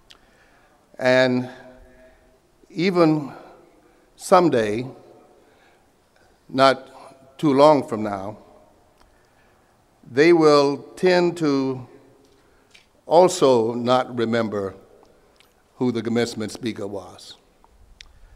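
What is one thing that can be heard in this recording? A man speaks slowly and deliberately into a microphone over a loudspeaker, with pauses between phrases.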